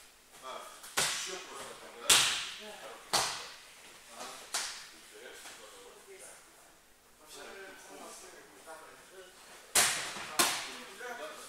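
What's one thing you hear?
Bodies thud heavily onto a mat in an echoing hall.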